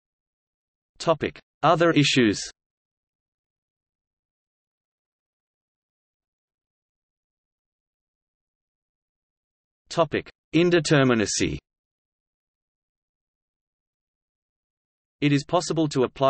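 A middle-aged man speaks in short, calm phrases with long pauses between them.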